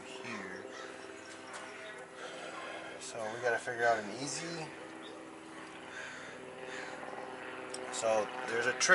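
A man speaks close by in a calm voice.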